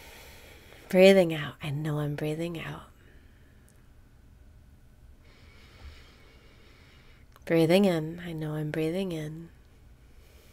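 A young woman speaks cheerfully and close to a microphone.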